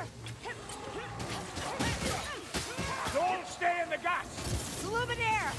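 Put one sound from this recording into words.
Swords clash and clang in quick blows.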